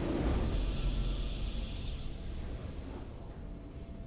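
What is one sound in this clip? A triumphant victory fanfare plays loudly and then fades.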